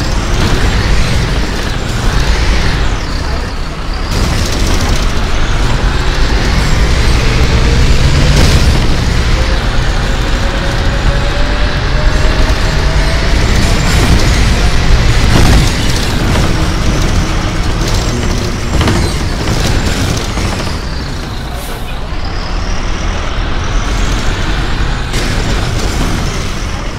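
A bus engine hums and whines as the bus drives along.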